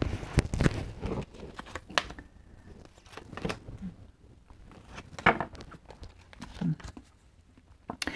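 Cards are laid down one by one on a wooden table.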